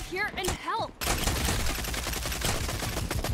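Guns fire in rapid bursts of shots.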